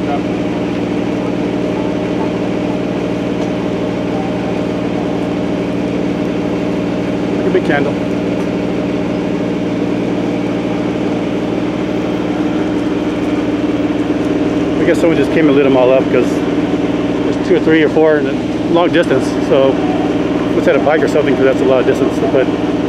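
A burning tree crackles and roars with flames.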